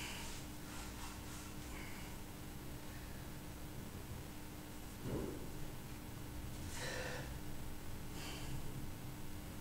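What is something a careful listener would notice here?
A man breathes out hard in short bursts.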